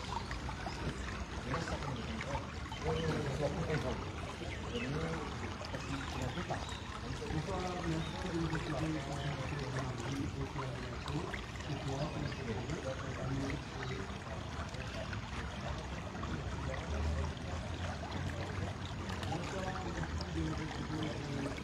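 A shallow stream of water trickles along a concrete gutter.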